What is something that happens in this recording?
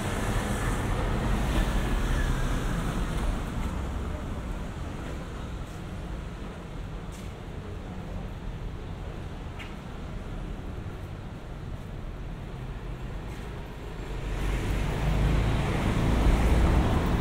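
Wind rumbles steadily outdoors, gusting louder at the start and end.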